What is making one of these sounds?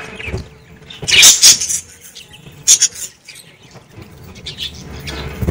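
A budgie flutters its wings.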